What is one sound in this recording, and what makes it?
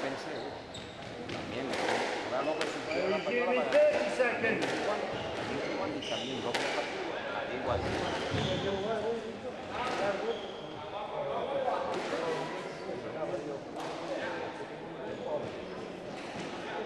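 A squeegee swishes across a wooden floor.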